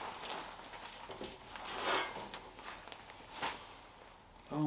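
A steel tube clanks and scrapes against a metal vise.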